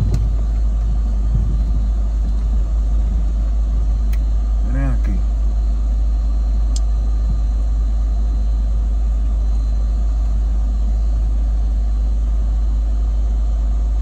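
A car engine rumbles steadily inside a slowly moving car.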